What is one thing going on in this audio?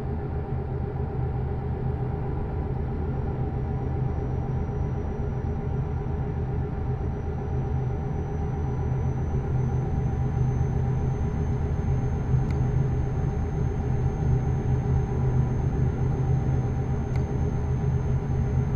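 A truck engine hums steadily at cruising speed.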